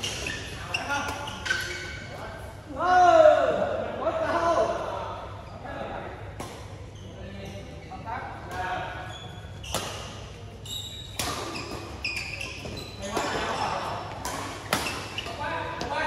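Shuttlecocks are struck with rackets in sharp pops.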